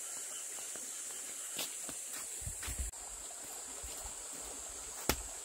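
Footsteps in sandals scuff on dry dirt.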